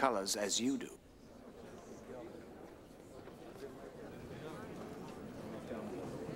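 A crowd murmurs quietly in a large room.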